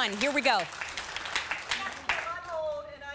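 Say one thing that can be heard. Women in an audience clap their hands.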